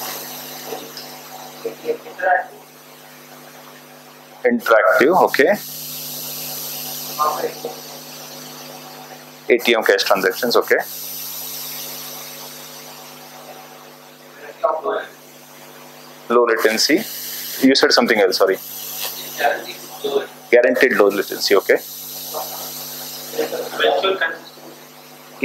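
A man speaks calmly to an audience in bursts with pauses, in a room with a slight echo.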